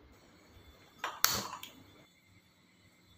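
A gas burner ignites with a soft whoosh.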